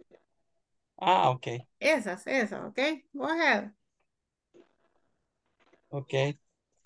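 A young man speaks over an online call.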